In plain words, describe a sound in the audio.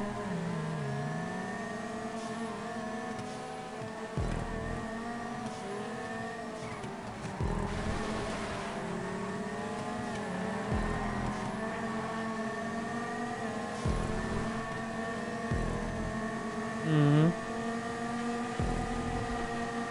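Car engines roar and rev steadily as the cars race.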